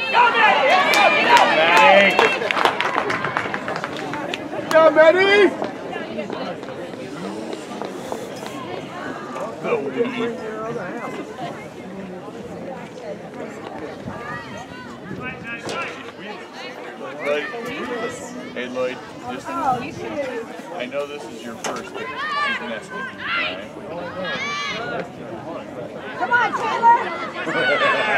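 Young players and spectators shout and cheer across an open outdoor field.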